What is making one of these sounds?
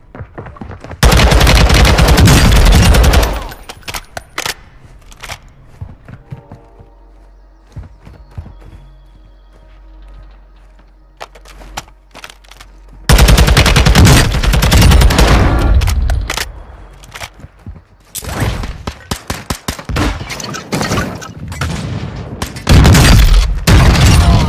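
Automatic gunfire rattles in loud rapid bursts.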